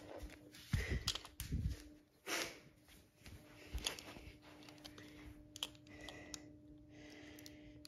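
Plastic toy trucks clatter against each other.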